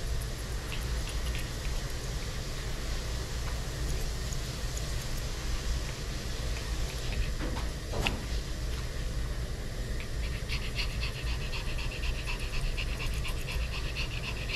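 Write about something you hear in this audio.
Scissors snip quickly and repeatedly through fur.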